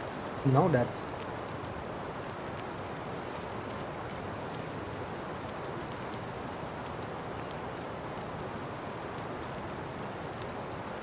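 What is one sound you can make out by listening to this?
A campfire crackles and pops softly.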